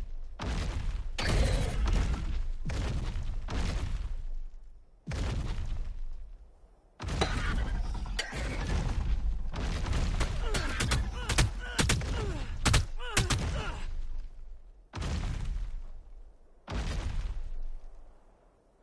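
A large creature stomps along with heavy thudding footsteps.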